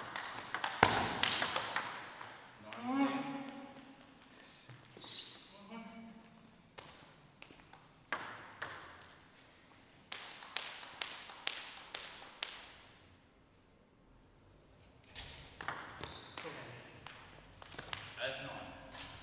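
A ping-pong ball clicks back and forth between paddles and bounces on a table in an echoing hall.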